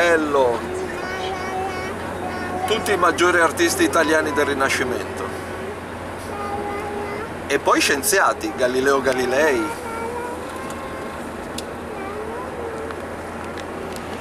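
A vehicle engine hums steadily, with road noise from inside.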